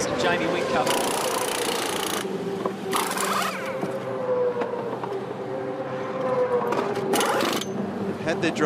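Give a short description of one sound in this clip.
Pneumatic wheel guns whir loudly in short bursts.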